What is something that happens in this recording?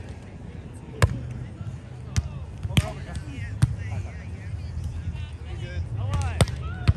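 A volleyball is struck with sharp slaps during play.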